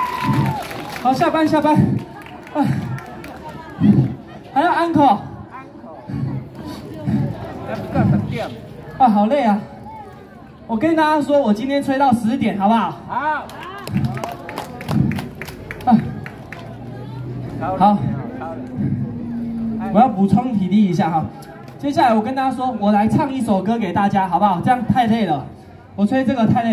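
A young woman sings through a loudspeaker.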